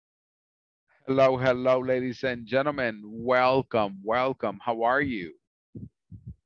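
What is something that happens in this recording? A man speaks with animation through an online call.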